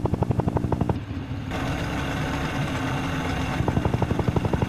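A motorboat engine hums.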